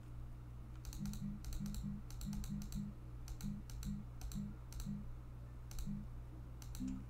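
Short electronic blips tick one after another.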